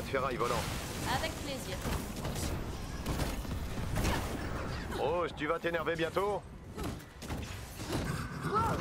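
Energy blasts and metallic impacts crash in a fight.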